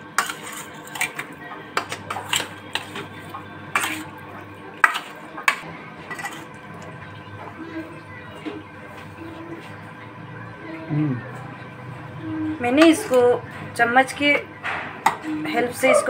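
Pieces of fish squelch as hands mix them in a metal bowl.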